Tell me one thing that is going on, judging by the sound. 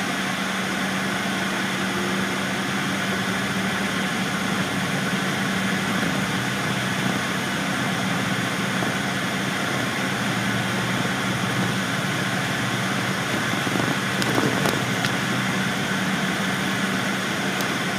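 Traffic noise rumbles outside.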